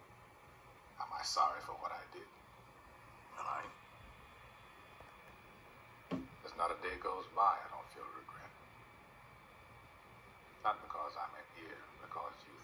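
An older man speaks slowly and calmly through a television speaker.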